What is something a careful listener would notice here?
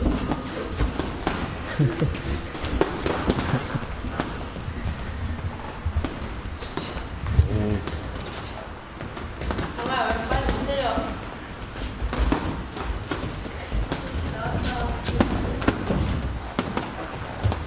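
Sneakers squeak and shuffle on a padded ring floor.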